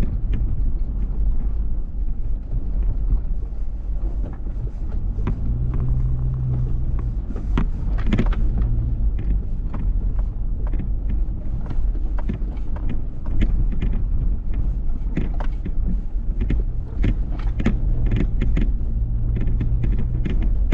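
Tyres crunch and rattle over a rough dirt track.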